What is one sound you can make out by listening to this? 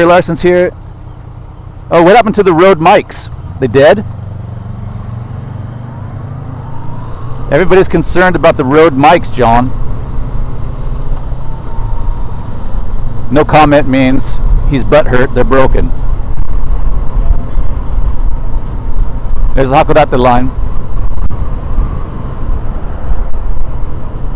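A motorcycle engine rumbles steadily while riding, growing louder as it speeds up.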